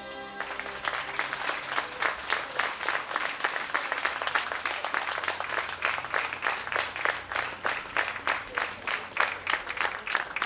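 Players strike hammered dulcimers in a quick, rhythmic folk tune.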